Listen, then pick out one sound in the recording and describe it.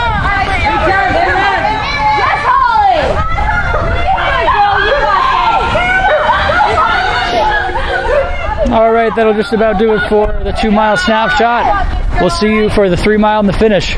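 Women spectators shout and cheer loudly close by.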